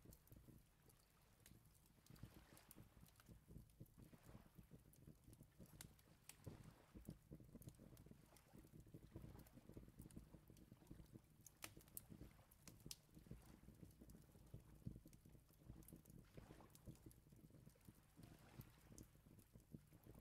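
A fire crackles in a small furnace.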